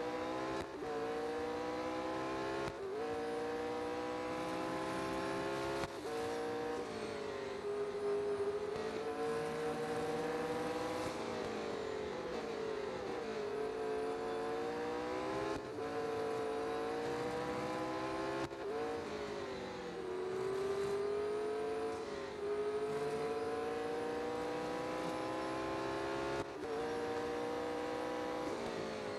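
A racing car engine roars loudly, rising in pitch through each gear and dropping sharply at each gear change.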